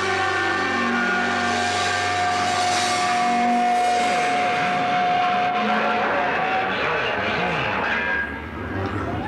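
A drum kit is pounded with crashing cymbals.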